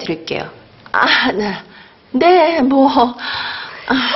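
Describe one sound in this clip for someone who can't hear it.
An elderly woman speaks with animation, close by.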